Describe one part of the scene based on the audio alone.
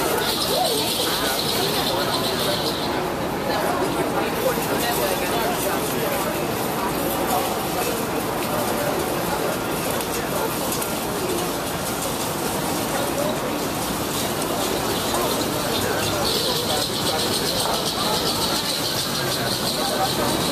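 Passersby murmur and chatter on a busy street outdoors.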